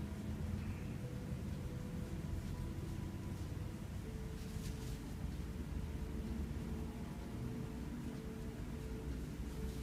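Hands rub softly against bare skin.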